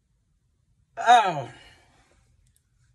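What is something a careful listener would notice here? A man lets out a loud, falling exclamation.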